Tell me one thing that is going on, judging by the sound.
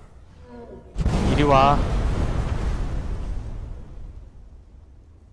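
A fireball explodes with a loud blast.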